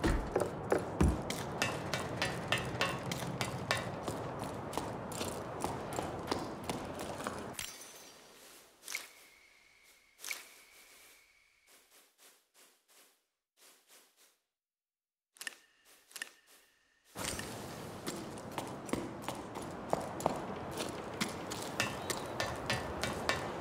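Footsteps thud quickly on wooden stairs and floor.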